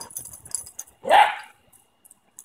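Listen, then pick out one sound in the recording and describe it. A dog gives a short bark.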